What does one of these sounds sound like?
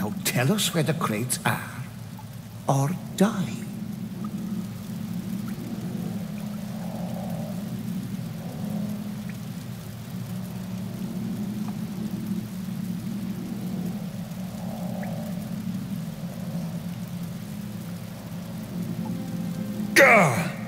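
A fire burns with a low, steady roar.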